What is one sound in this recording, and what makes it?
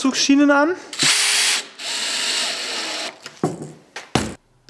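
A cordless drill whirs as it drives a screw.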